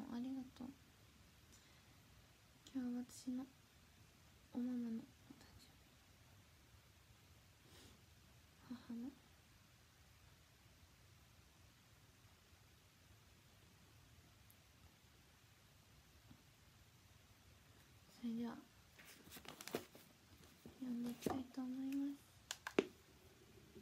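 A young woman speaks softly and close to a microphone, in short bursts with long pauses.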